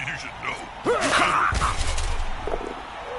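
A heavy blow lands with a loud crunching thud.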